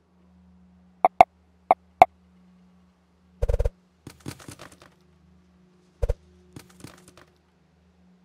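Short sharp interface clicks and chimes sound as menu items are selected.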